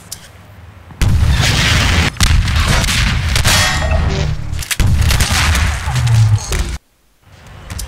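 A rocket launcher fires with a loud whooshing blast.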